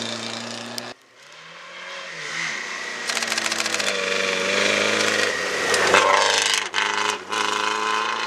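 A second rally car engine roars as it approaches and revs hard.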